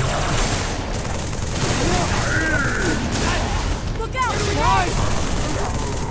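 Rapid gunfire blasts out in quick bursts.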